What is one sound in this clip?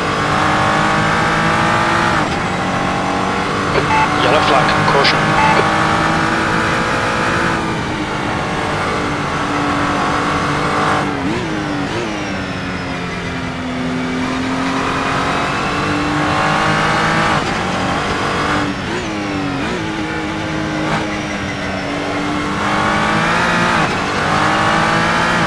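A racing car engine roars loudly, revving up through the gears and dropping in pitch as it shifts down.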